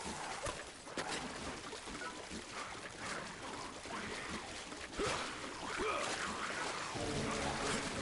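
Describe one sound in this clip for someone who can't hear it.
Splashing footsteps run through shallow water.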